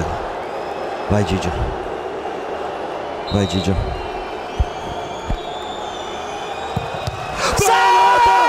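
A large stadium crowd murmurs steadily.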